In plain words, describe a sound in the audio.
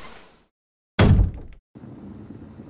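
A heavy wooden door slams shut.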